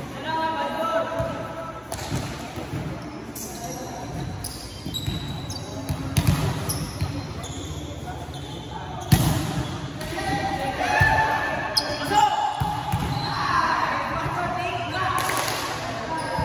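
A volleyball is struck with sharp slaps in a large echoing hall.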